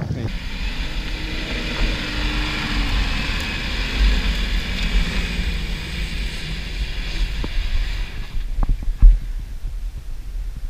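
Wind buffets outdoors.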